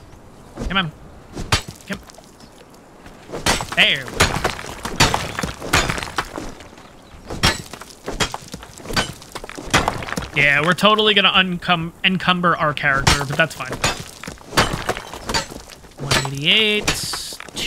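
A pickaxe strikes stone with sharp knocks.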